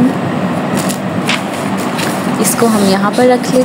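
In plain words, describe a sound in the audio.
Paper rustles as a sketchbook page is turned over.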